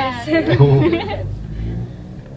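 Young women laugh loudly and chatter close by.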